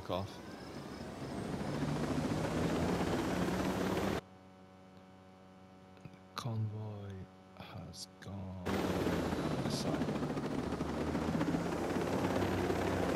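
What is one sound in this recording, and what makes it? A helicopter's rotor thumps and roars loudly.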